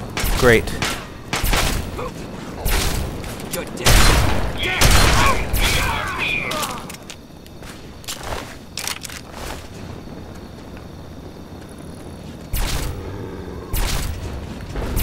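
A rifle fires loud shots in quick bursts.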